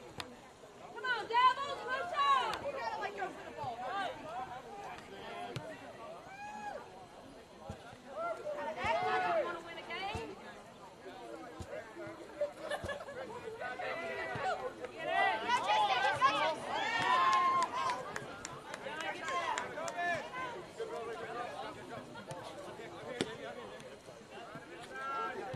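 Players shout to each other across an open outdoor field.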